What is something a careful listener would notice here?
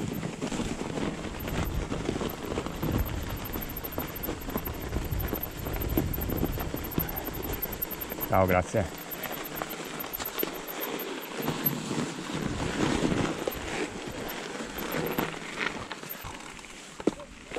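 Bicycle tyres crunch over packed snow.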